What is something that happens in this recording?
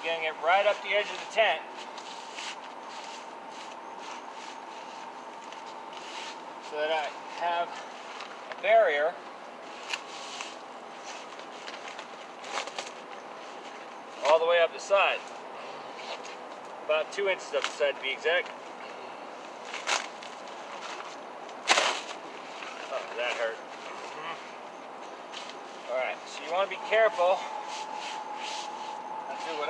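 Hands rustle and shuffle through fabric close by.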